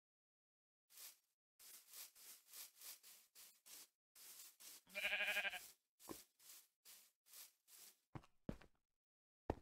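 Footsteps tread steadily over grass and stone.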